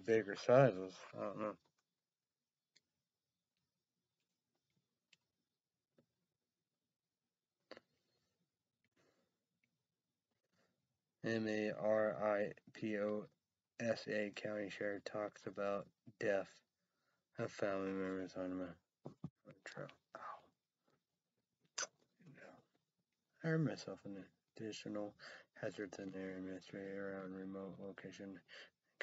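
A young man talks calmly and close by, in short bursts with pauses.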